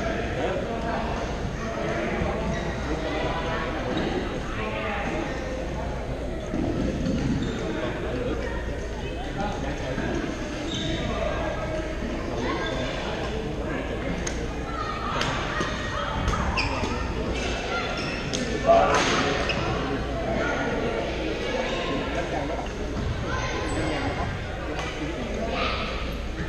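Shuttlecocks are struck with rackets in short sharp taps, echoing in a large hall.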